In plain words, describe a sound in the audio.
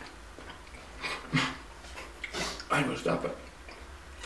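A young man laughs close by.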